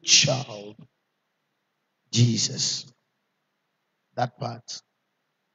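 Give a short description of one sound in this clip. A man preaches forcefully into a microphone in short bursts.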